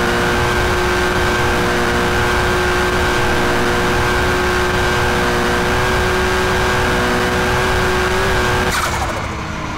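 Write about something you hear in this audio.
A car engine roars at a steady high pitch.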